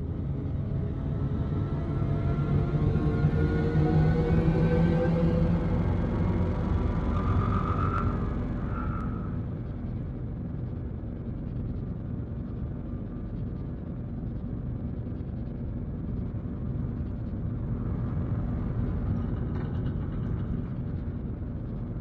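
A spaceship engine roars louder and rises in pitch as it throttles up, then settles into a steady low hum.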